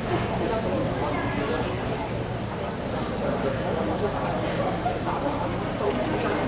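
Many adults chatter at once in a large echoing hall.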